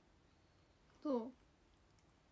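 A young woman makes a short high vocal sound close to a microphone.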